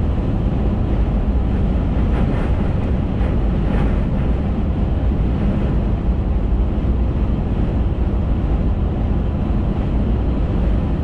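Wind rushes against a moving car.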